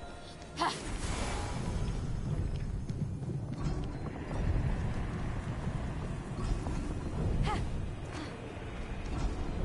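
Footsteps run across a stone floor.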